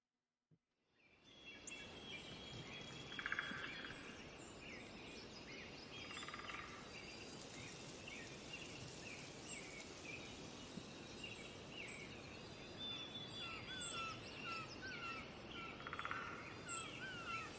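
Wind blows softly through pine trees outdoors.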